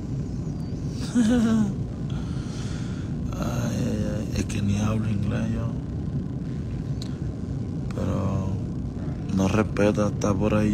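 A man speaks quietly and close to a phone microphone, in short bursts.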